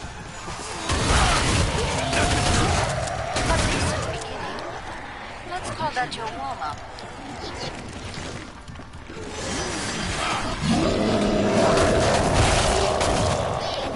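Zombies groan and snarl nearby.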